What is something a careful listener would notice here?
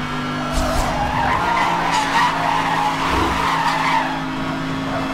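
Tyres screech as a car drifts around a bend.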